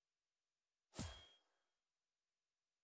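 A short game menu sound clicks once.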